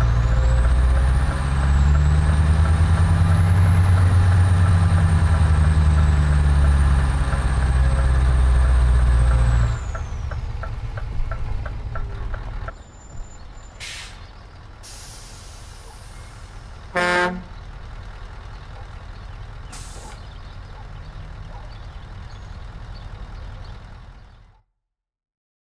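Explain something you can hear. A truck engine rumbles steadily, then drops to a quieter hum.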